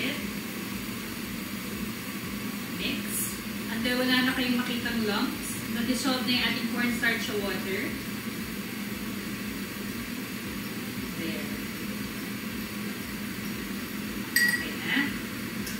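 A spoon clinks against a cup while stirring.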